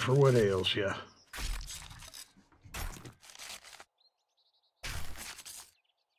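A knife chops wetly into an animal carcass, again and again.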